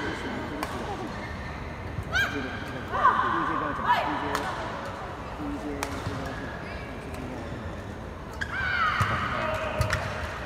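A shuttlecock is struck sharply by rackets, back and forth, in a large echoing hall.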